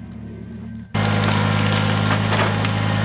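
A tractor engine runs loudly nearby.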